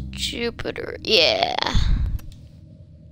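An electronic whoosh sweeps as a game menu changes.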